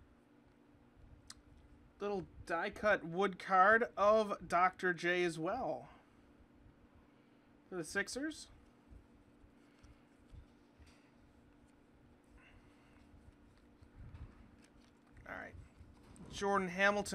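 Trading cards slide and rustle softly between fingers.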